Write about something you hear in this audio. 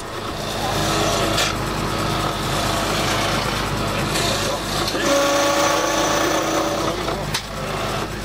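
A chisel scrapes against spinning wood on a lathe.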